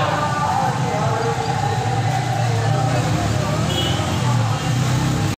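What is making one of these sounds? A large crowd of people chants and sings together outdoors.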